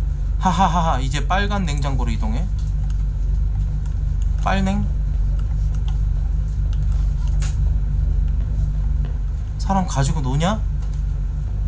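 A man speaks into a microphone close by, in short animated bursts.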